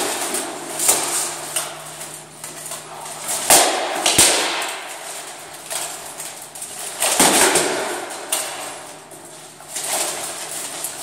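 Padded weapons strike armour and shields in an echoing hall.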